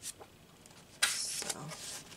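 A paper page rustles as it turns.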